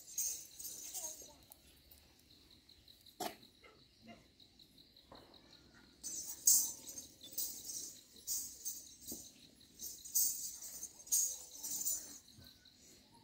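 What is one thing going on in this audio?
Ankle bells jingle in quick bursts.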